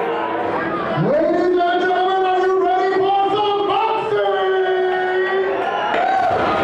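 A man announces loudly through a microphone, drawing out his words in an echoing hall.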